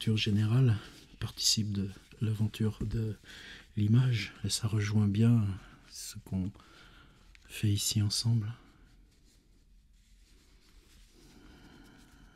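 Paper rustles as a man handles it.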